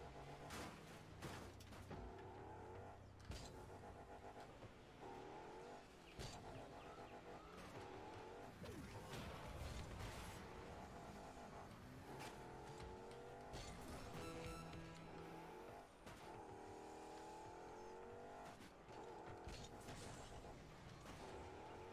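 A game car engine revs and whines up and down throughout.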